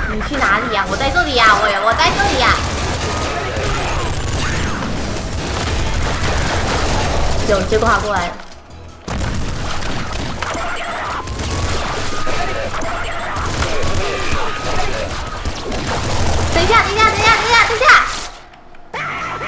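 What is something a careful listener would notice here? Rapid video game gunfire and explosions crackle and boom.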